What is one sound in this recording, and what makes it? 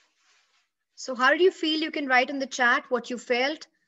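A young woman speaks calmly into a microphone on an online call.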